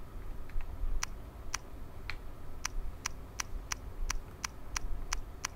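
A combination lock's dials click one after another as they turn.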